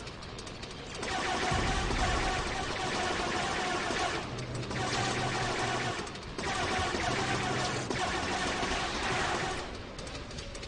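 Rapid laser blasts fire in long bursts.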